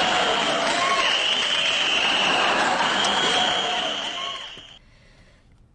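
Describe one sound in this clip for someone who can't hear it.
A large crowd cheers and applauds in a big hall.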